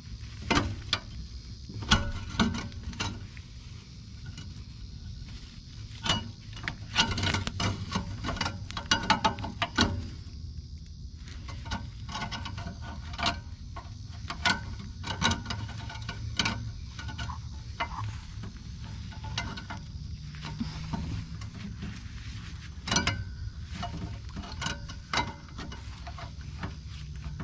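Pliers click and scrape against a metal blade close by.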